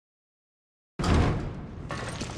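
A pistol fires a loud shot.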